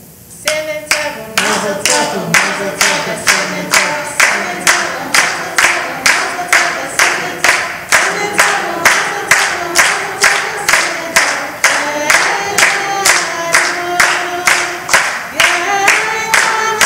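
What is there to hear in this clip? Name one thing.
A crowd of men and women sings together.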